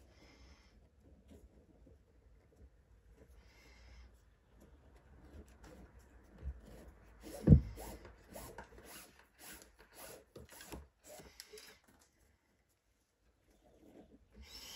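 Cord rubs and rustles as hands pull it through a knot.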